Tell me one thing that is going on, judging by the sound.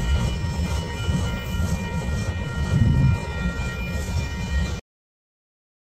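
A freight train rumbles steadily along the tracks outdoors.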